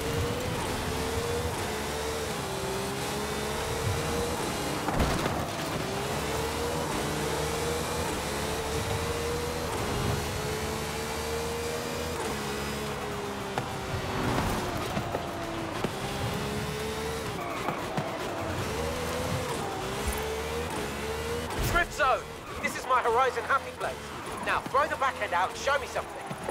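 A racing car engine roars loudly, rising and dropping in pitch as it shifts gears.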